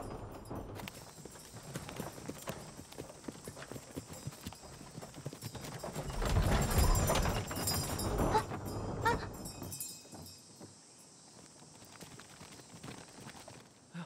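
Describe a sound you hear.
Horses' hooves clop on a dirt path.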